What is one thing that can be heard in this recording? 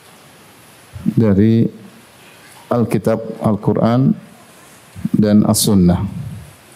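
A man speaks calmly and slowly into a microphone, with pauses.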